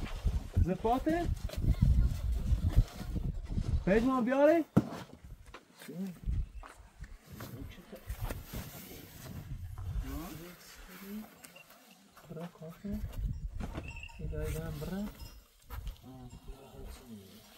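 Young men talk to each other nearby.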